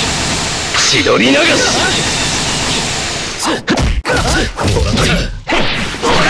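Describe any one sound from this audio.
Punches and kicks land with sharp electronic impact sounds.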